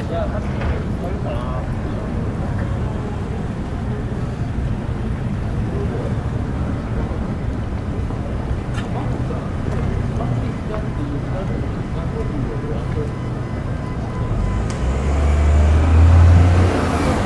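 Distant people chatter faintly in the street.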